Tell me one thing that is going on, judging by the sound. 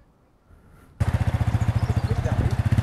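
A motorbike engine idles with a steady rumble.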